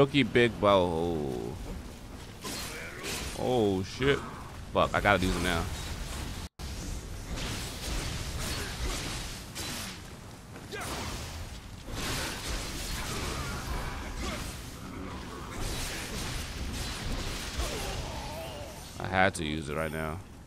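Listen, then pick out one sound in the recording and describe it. A young man comments into a close headset microphone.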